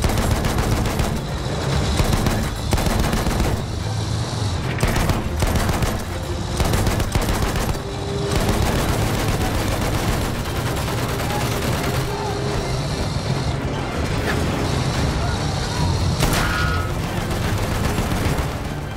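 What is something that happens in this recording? Gunfire and explosions crack and boom.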